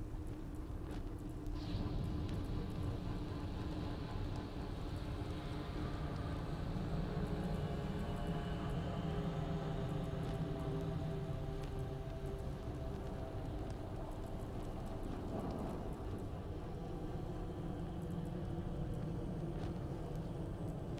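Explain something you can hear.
Soft clicks sound now and then as menu items are selected.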